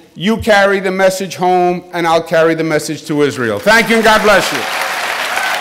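A middle-aged man speaks emphatically into a microphone, his voice filling a large hall.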